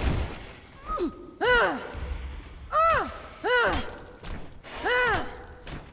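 A large winged creature shrieks.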